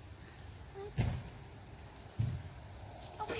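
A trampoline mat thumps softly.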